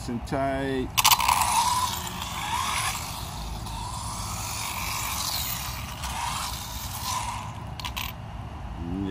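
Small tyres hiss and scrub over concrete.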